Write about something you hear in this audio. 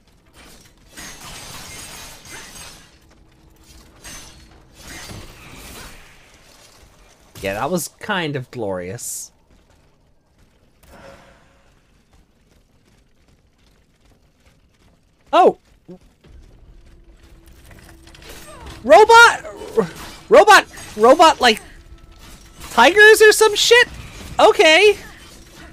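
Metal blades clash and strike during a fight.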